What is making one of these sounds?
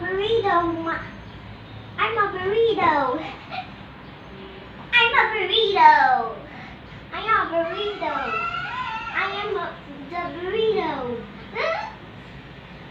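A young child chatters and squeals nearby.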